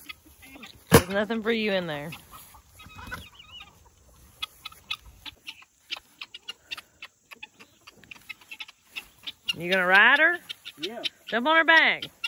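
A cow moos loudly nearby.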